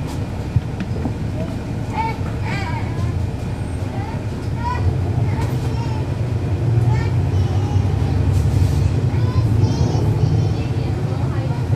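A bus engine idles with a steady low rumble nearby.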